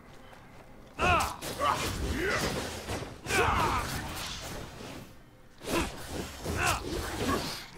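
Blades clash and strike in a fierce fight.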